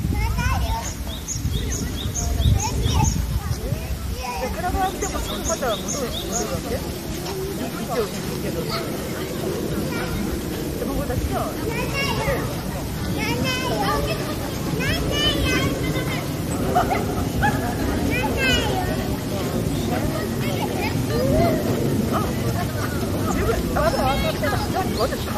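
A few people talk faintly in the distance.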